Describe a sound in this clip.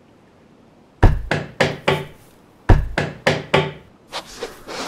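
A stone wall block thuds into place.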